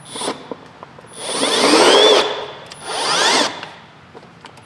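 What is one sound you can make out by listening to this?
A cordless power tool whirs loudly in short bursts, rising and falling in pitch.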